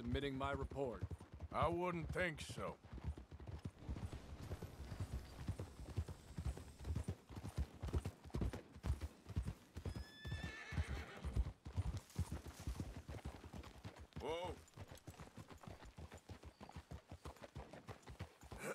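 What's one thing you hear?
Horses' hooves pound steadily at a gallop.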